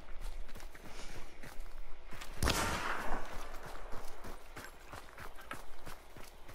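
Footsteps crunch steadily on dry forest ground.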